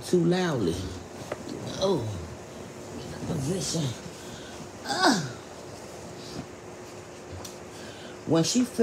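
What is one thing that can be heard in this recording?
A man speaks close by in short, animated bursts with pauses between them.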